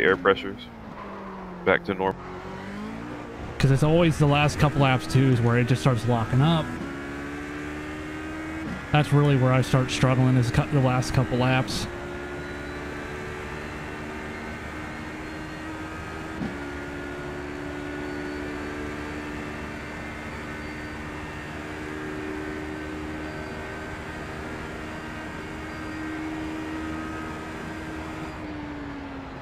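A race car engine hums steadily and shifts up through the gears.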